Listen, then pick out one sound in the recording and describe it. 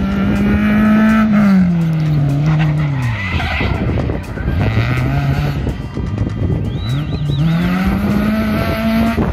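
A rally car engine roars and revs hard, rising and falling in pitch.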